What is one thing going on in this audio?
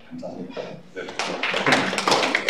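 A group of people applaud in a large room.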